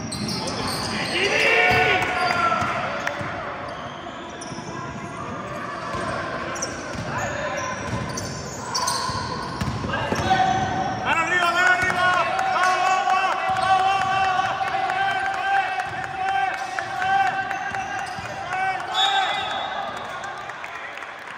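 Sneakers squeak on a wooden floor in a large echoing hall.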